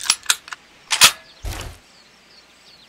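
A hunting rifle fires a single shot.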